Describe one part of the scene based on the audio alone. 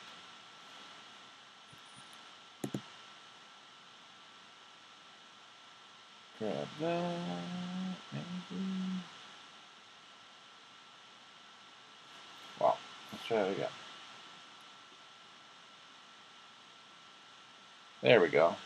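A plastic card case taps and rattles in hands.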